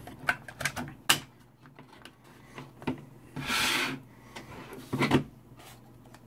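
Hands handle and knock a small radio set on a table.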